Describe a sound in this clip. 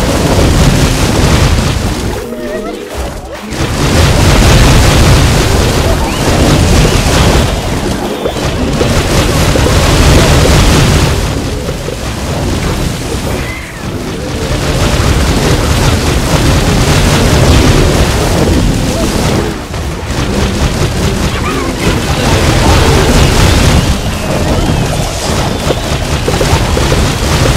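Cartoonish explosions and fiery blasts boom over and over.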